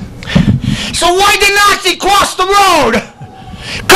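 A middle-aged man sings a drawn-out line through a microphone.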